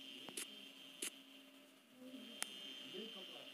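An electric switch clicks.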